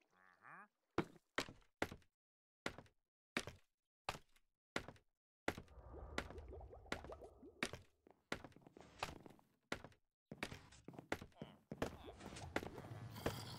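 Footsteps tap rhythmically on a wooden ladder during a climb.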